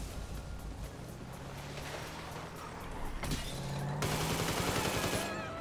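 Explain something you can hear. A car engine hums steadily and revs.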